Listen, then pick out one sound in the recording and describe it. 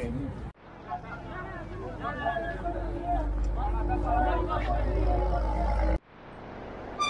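Several men talk nearby in a crowd.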